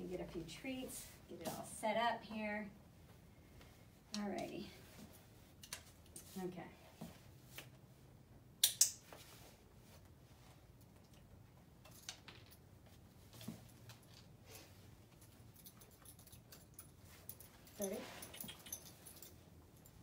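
A woman speaks calmly and cheerfully to a dog, close by.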